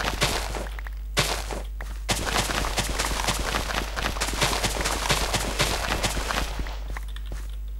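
Crops rustle and snap in quick bursts as they are harvested.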